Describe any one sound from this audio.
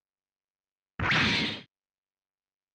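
A heavy blast hits with a rumbling burst.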